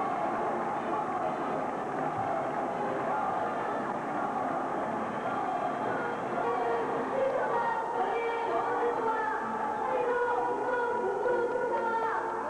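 A young woman speaks loudly into a microphone over a loudspeaker.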